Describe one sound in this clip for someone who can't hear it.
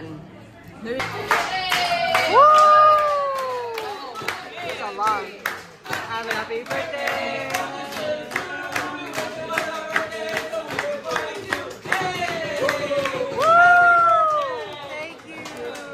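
A group of people sings loudly together.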